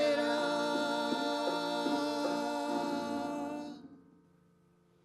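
An electric keyboard plays chords.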